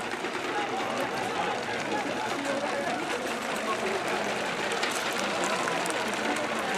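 A large crowd chatters and cheers in an open stadium.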